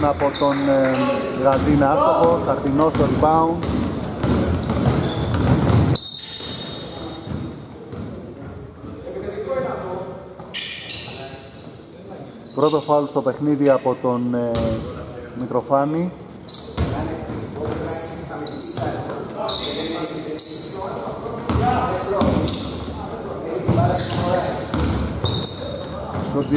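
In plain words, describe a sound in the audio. Basketball shoes squeak sharply on a wooden court in a large echoing hall.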